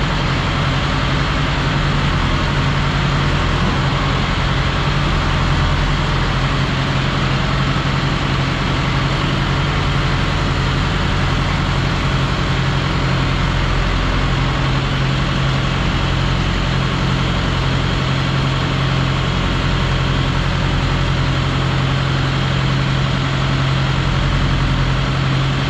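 A feed mixer hums and rattles as it dispenses feed.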